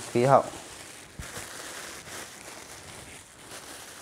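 A plastic bag rustles and crinkles in a man's hands.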